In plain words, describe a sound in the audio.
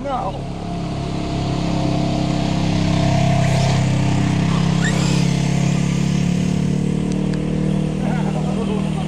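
An off-road vehicle's engine rumbles as it drives past on gravel.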